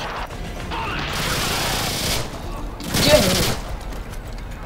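Pistol shots crack close by.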